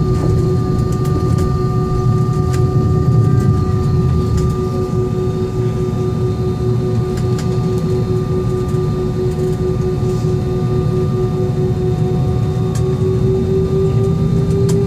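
Airliner wheels rumble and thump over the taxiway.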